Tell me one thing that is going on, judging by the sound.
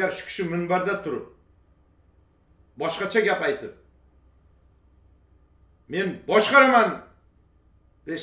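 A middle-aged man speaks with animation through a microphone in short bursts with pauses.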